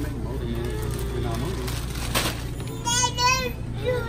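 A plastic snack bag crinkles as it is handled.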